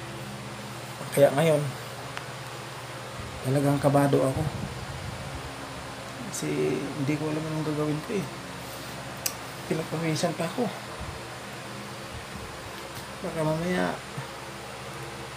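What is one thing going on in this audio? A middle-aged man speaks close to the microphone.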